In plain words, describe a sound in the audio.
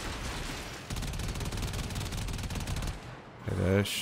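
Rapid laser gunfire rattles.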